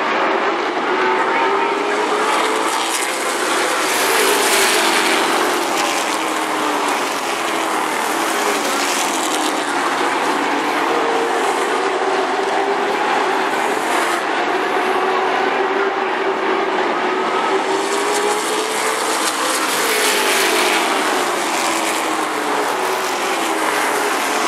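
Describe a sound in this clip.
Race car engines roar loudly around a track, rising and falling in pitch as they pass.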